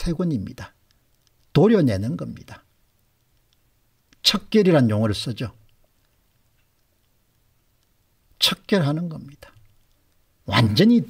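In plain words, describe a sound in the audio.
An older man speaks calmly into a close microphone, in short phrases with pauses.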